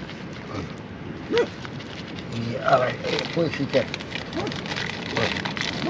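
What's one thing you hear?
A plastic wrapper crinkles and rustles up close.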